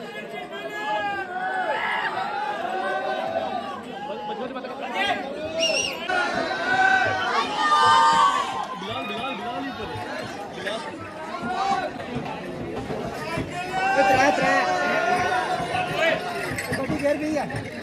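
A crowd of men and women talk and shout close by, outdoors.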